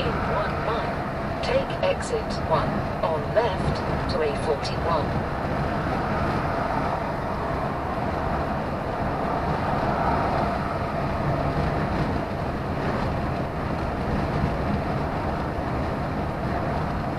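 A vehicle's engine drones steadily as it drives along a motorway.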